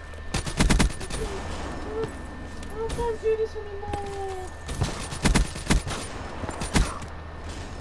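Gunfire bursts in rapid, loud shots.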